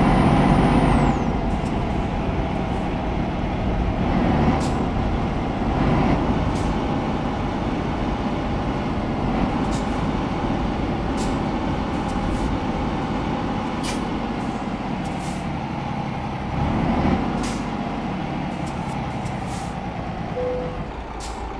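Tyres hum on the road.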